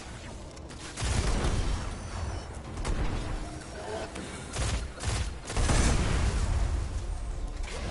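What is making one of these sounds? Explosions rumble loudly.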